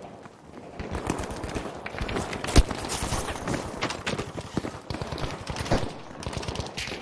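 Gunshots crack nearby, with echoes in a street.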